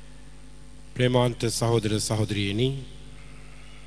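An older man speaks with feeling into a handheld microphone, heard through loudspeakers.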